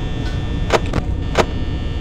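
Static crackles and hisses briefly.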